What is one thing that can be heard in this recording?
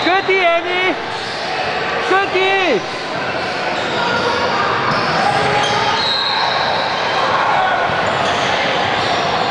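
Children call out to each other at a distance.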